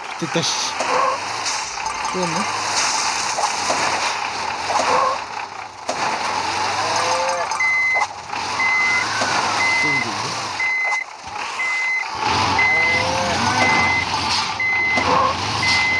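A cartoon truck engine revs and roars.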